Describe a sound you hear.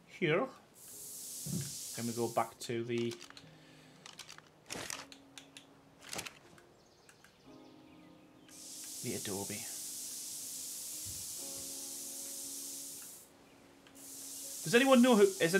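A spray gun hisses steadily in bursts.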